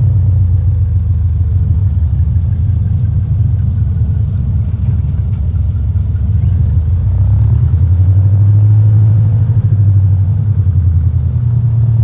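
A small propeller plane's engine drones steadily and grows louder as it speeds up.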